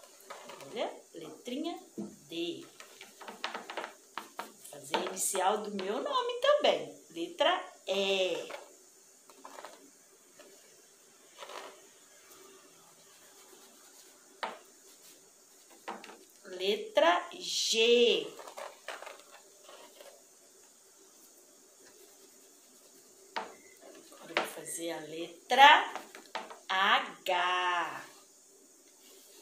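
A young woman talks with animation, close by.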